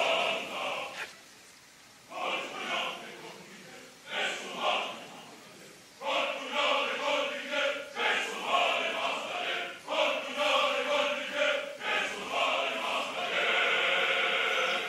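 A woman sings out in anguish.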